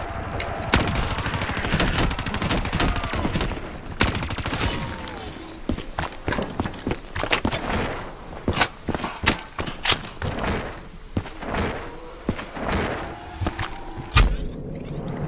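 Gunfire bursts out in sharp shots.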